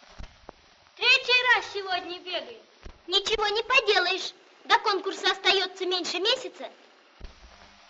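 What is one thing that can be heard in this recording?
A boy speaks calmly and close by.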